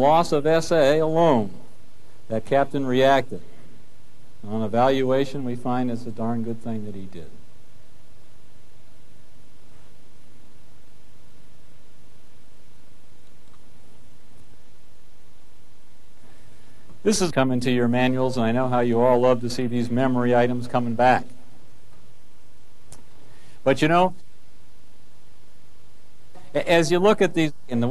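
A man speaks calmly to an audience through a microphone.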